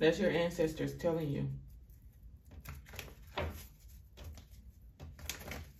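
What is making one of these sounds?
Playing cards shuffle and flick softly.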